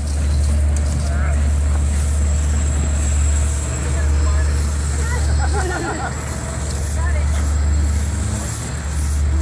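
A diesel commuter train idles with a low rumble.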